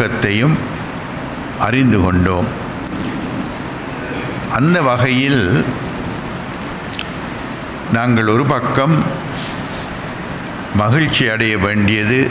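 An elderly man speaks slowly and solemnly into a microphone, in short phrases with pauses, heard over a loudspeaker in a large echoing room.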